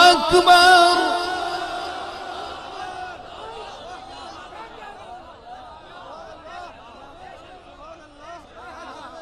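A man speaks loudly and forcefully into a microphone, heard through a loudspeaker with echo.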